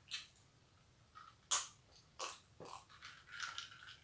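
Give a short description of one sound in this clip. A woman gulps a drink from a plastic cup.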